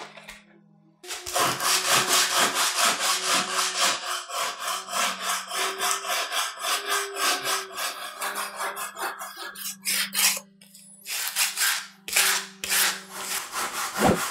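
A sanding block rasps back and forth over wood in quick, even strokes.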